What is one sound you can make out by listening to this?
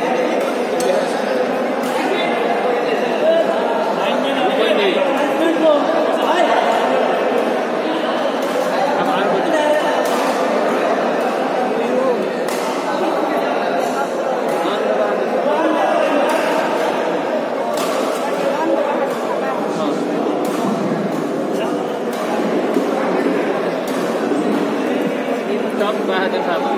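Shuttlecocks are struck with sharp racket pops.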